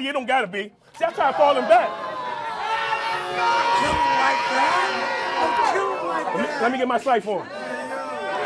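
A crowd cheers and shouts in reaction.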